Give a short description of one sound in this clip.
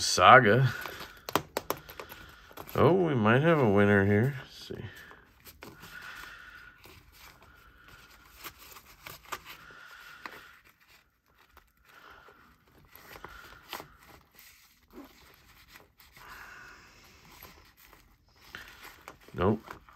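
Fabric rustles softly as pens are slipped into elastic loops.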